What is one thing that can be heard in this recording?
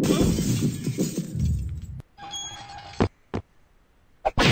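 A cartoon figure falls to the ground with a thud.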